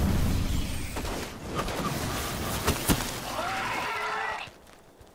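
A gun fires sharp laser shots.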